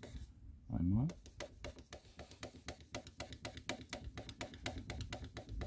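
A hand pad rubs back and forth on a car's paintwork.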